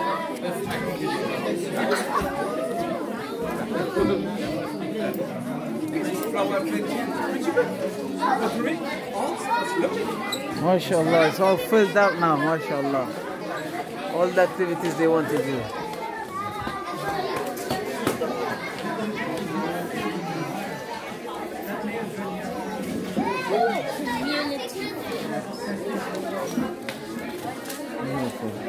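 A crowd of adults and children chatter throughout a room that echoes a little.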